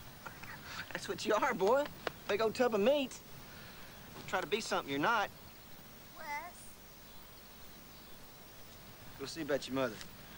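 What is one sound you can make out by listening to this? An adult man speaks with animation, close by.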